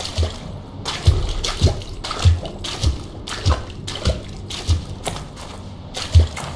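Footsteps thud steadily on soft ground at a walking pace.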